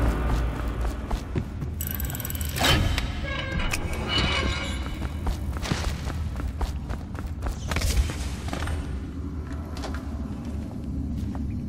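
Footsteps tread steadily across a hard floor.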